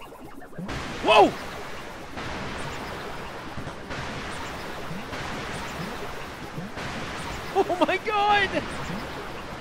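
Bright chirping electronic sound effects ring out briefly.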